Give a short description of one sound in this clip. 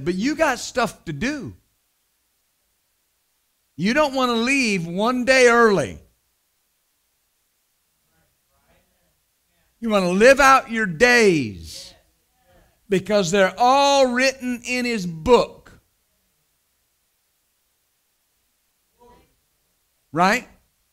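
A middle-aged man speaks with animation into a microphone, pausing between phrases.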